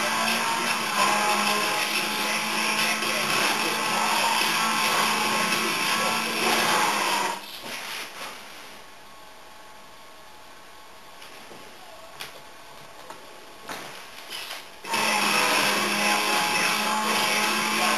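A video game car engine roars loudly at high speed through a speaker.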